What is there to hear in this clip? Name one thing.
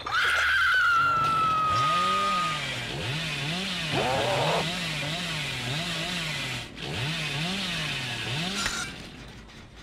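A chainsaw engine idles and revs loudly in bursts.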